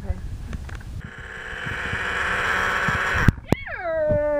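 A hand blender whirs loudly, blending ice and liquid.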